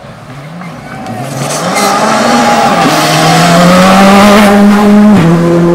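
A second rally car engine roars and revs as it passes.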